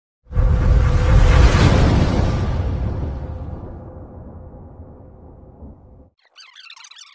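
A deep whooshing boom swells and slowly fades away.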